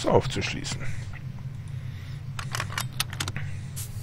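A key turns in a lock with a metallic click.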